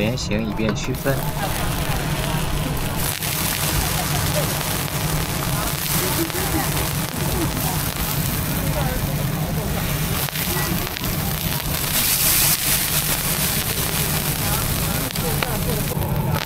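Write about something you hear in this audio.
Flatbreads sizzle steadily on a hot griddle.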